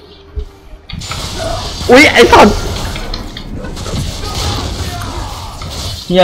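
Magic spell effects whoosh and crackle in a fight.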